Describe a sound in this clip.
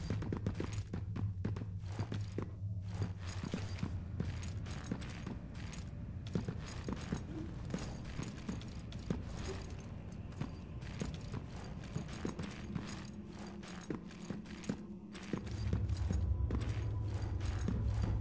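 Footsteps clatter quickly on a hard floor.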